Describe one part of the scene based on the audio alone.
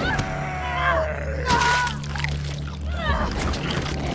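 A woman cries out in pain.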